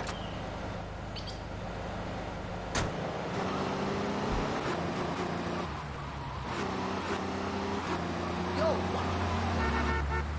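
A pickup truck engine hums and revs.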